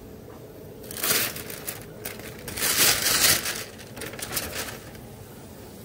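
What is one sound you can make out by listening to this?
Paper bags rustle and crinkle.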